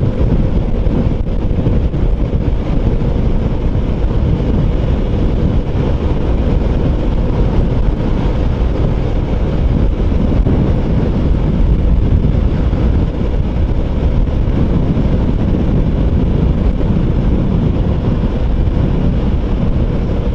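Wind roars loudly and steadily past a fast-moving motorcycle.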